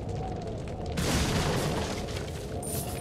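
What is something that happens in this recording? A wooden barrel smashes apart with a loud crack.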